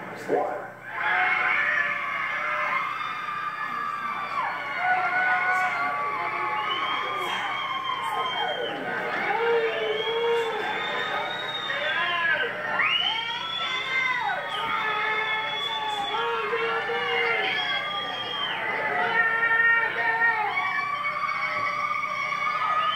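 A crowd of young people cheers and shouts outdoors.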